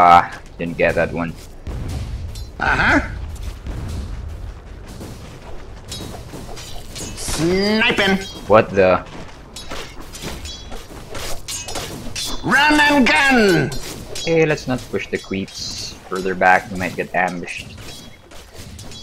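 Game characters clash in battle.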